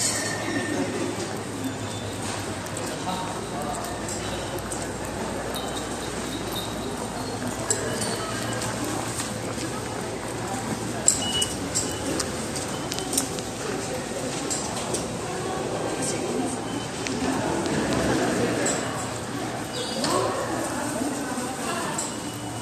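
A low crowd murmur fills a large echoing hall.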